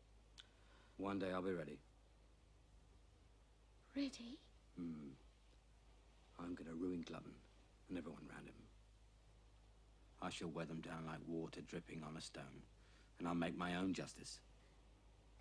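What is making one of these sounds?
A man speaks quietly and calmly, close by.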